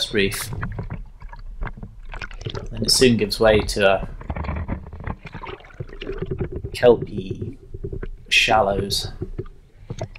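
Water splashes and sloshes close by.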